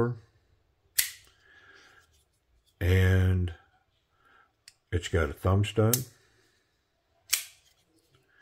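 A folding knife blade snaps open with a sharp click.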